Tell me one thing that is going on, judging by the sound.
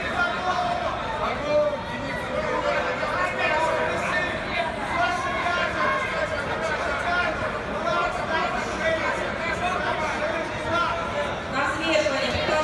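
A crowd murmurs and calls out throughout a large echoing hall.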